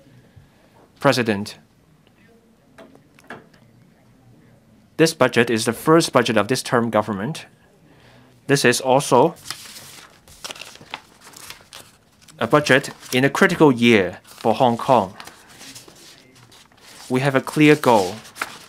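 A middle-aged man speaks calmly into a microphone in a large room, pausing between phrases.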